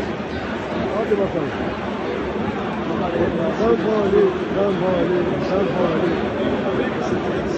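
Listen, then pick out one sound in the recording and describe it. Nearby male fans sing along in a chant.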